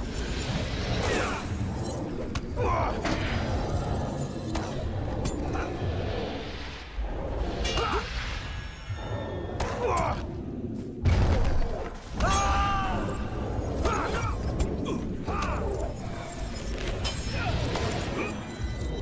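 Magic spells whoosh and chime.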